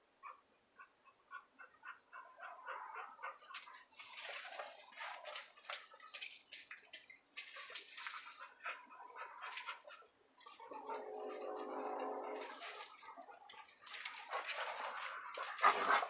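A hand rubs a dog's fur with a soft rustle.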